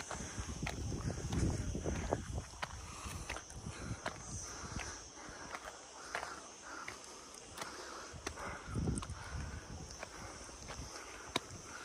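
Footsteps crunch on a rocky dirt path.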